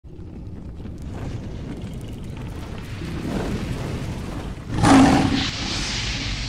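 Flames roar and crackle, swelling into a loud whoosh.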